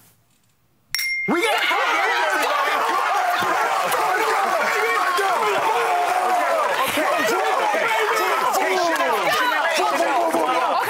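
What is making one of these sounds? A small group of men and women cheer and shout excitedly.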